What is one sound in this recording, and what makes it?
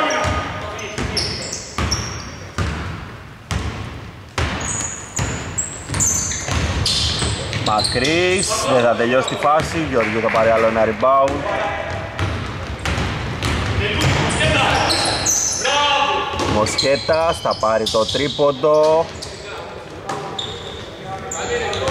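A basketball bounces repeatedly on a wooden floor in a large echoing hall.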